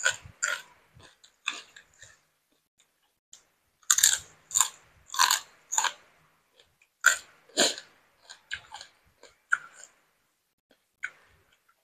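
A woman chews crunchy food loudly, close to a microphone.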